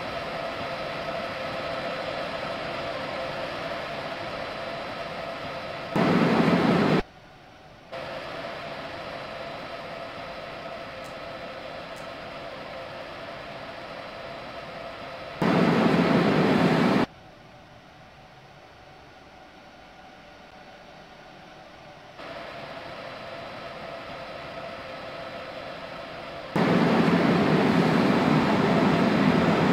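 An electric train hums steadily as it rolls along the rails.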